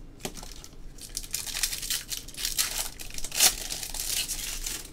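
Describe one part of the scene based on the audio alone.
A foil card pack crinkles and rustles as hands tear it open.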